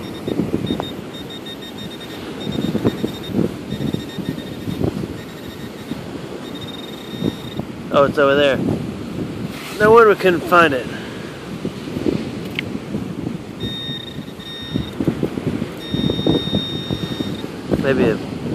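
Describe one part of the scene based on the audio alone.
A metal detector beeps in short repeated bursts.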